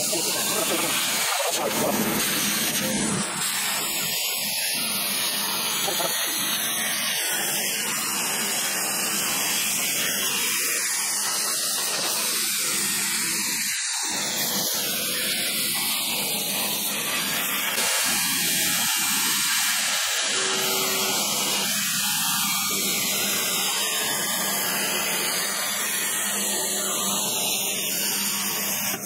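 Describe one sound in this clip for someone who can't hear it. A plasma torch cuts through steel with a loud, steady hiss and roar.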